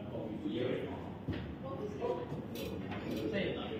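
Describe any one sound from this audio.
Pool balls click together.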